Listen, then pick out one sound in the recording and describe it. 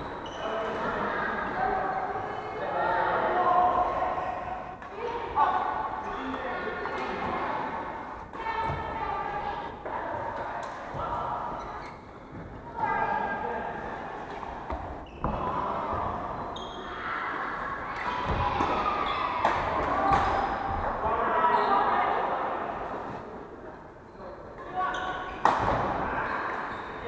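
Men talk and call out across an echoing hall.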